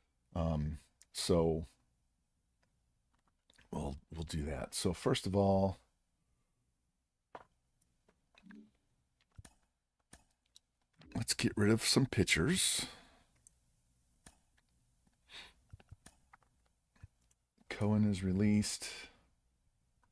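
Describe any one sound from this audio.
A middle-aged man talks calmly into a close microphone, in short bursts with pauses.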